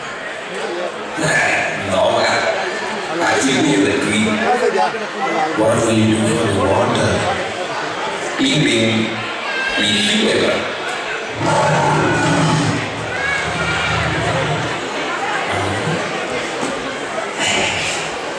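A young man speaks with animation, heard from across a hall.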